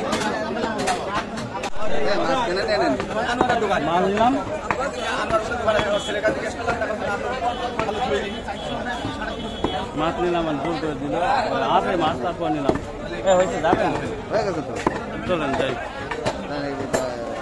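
A cleaver chops meat against a wooden block with heavy thuds.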